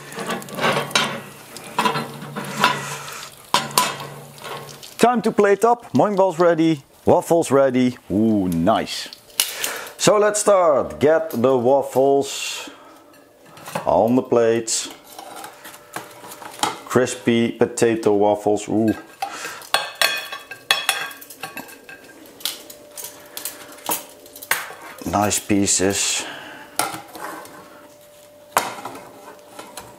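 Metal tongs clink against a plate and grill.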